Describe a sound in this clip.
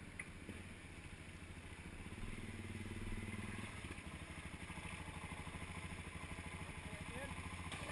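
Another dirt bike engine revs as it approaches along the track.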